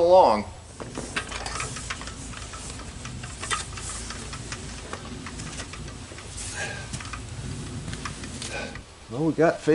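Metal rattles and clicks as a man works at a door latch.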